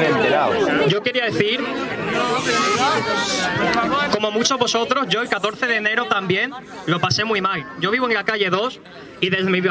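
A young man speaks calmly into a microphone through a loudspeaker.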